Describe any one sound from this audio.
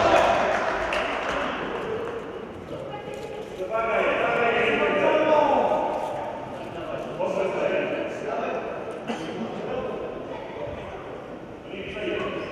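Men shout to each other across a large, echoing hall.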